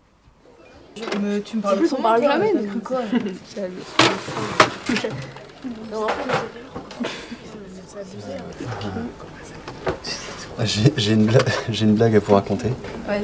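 Several young people talk and chatter at once in a room with a slight echo.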